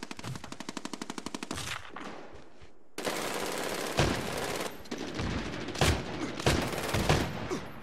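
A spent shell clinks as a shotgun is reloaded.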